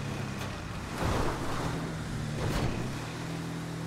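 A buggy thuds and crashes over rocks.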